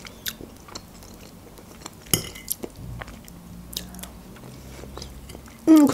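A fork clicks and scrapes in a plastic salad container.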